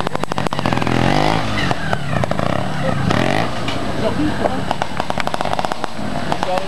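A motorbike's engine pops and crackles.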